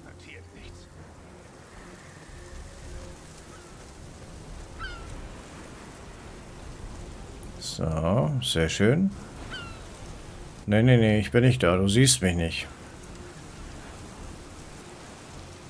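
Tall grass rustles as a body crawls through it.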